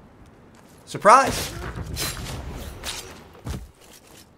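A young man speaks with excitement close to a microphone.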